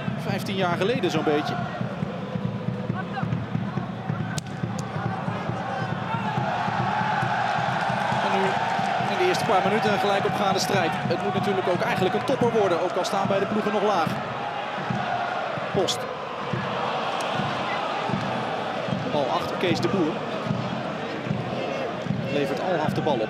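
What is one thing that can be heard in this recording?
A large crowd chants and sings in a stadium.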